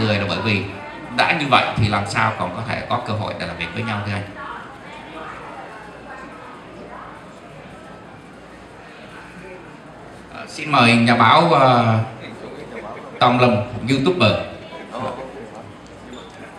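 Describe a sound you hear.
A man speaks calmly into a microphone, heard through a loudspeaker in a room.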